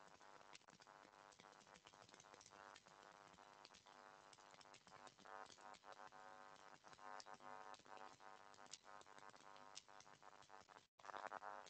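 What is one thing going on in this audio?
A man speaks steadily over an online call.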